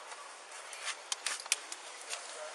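A car door latch clicks.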